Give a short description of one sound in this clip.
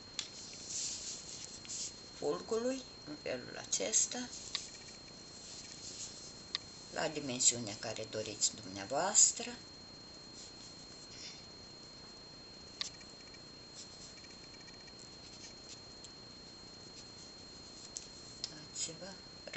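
Small beads click softly as fingers handle them.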